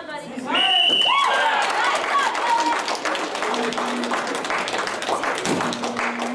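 Spectators clap and applaud.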